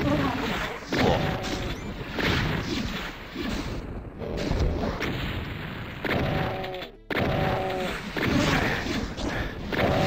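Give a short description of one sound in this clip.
Monsters growl and screech.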